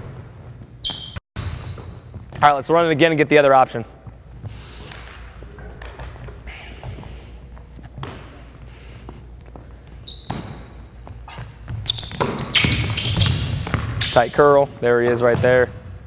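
Sneakers squeak sharply on a hardwood floor.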